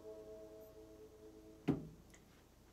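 A piano chord rings and fades.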